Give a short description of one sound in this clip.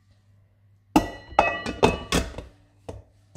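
A metal bowl clunks and clatters as it is fitted onto a mixer.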